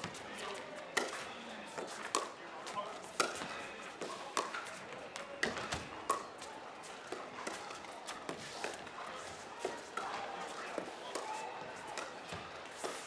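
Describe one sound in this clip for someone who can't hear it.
Paddles pop sharply as a ball is hit back and forth.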